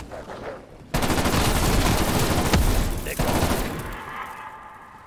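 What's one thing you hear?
A loud explosion booms and fades out.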